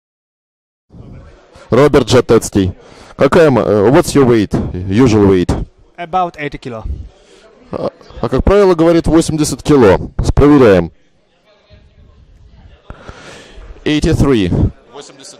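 A man speaks into a handheld microphone with animation, close by.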